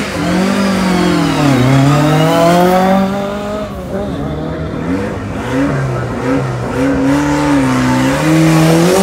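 A car engine revs loudly, rising and falling in pitch.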